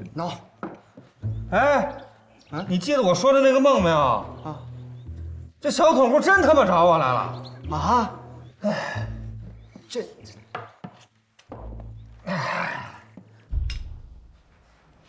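A middle-aged man groans and talks with strain close by.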